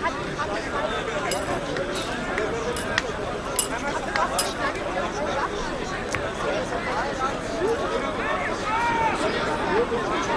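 A crowd of spectators chatters outdoors.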